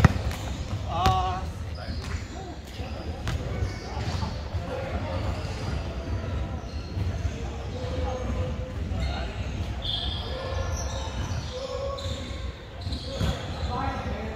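Young men talk and call out to each other in a large echoing hall.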